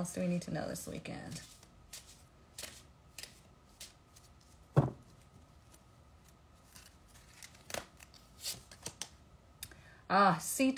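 Cards riffle and shuffle in a woman's hands.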